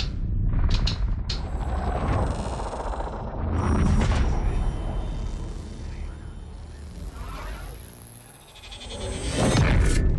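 Deep booming whooshes and glitchy electronic crackles play loudly.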